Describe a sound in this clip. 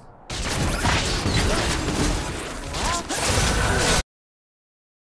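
Magic spells crackle and whoosh in a game battle.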